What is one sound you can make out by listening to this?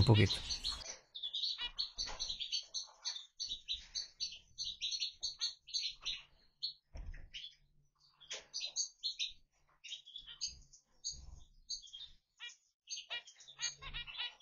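A small finch chirps in short, rapid, nasal beeps close by.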